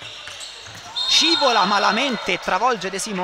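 Players shout out on the court.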